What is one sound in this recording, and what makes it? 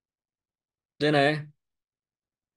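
A middle-aged man speaks briefly and calmly into a close microphone.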